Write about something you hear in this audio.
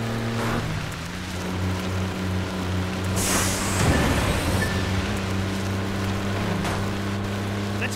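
Bus tyres rumble over dirt.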